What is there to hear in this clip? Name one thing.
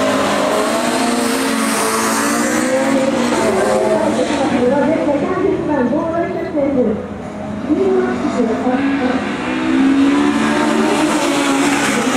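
Tyres squeal on asphalt through tight turns.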